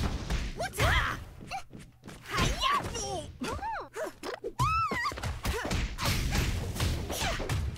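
Rapid punches and kicks land with sharp smacks in a fighting game.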